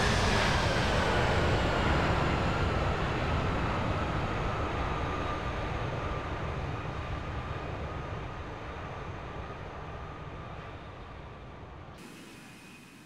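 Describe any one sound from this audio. A jet airliner roars overhead and slowly fades into the distance.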